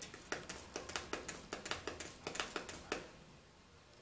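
A spray bottle spritzes several times in quick bursts.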